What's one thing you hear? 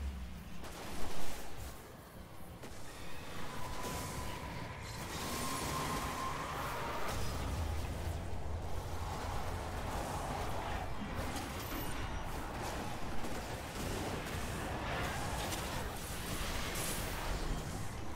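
Guns fire in quick bursts.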